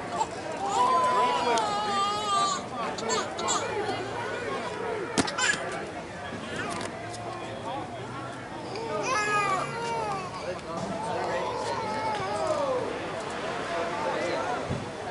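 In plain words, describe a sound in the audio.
Several men shout and call to each other outdoors across an open field.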